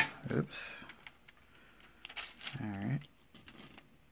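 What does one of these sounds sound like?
Plastic film crinkles softly under a hand.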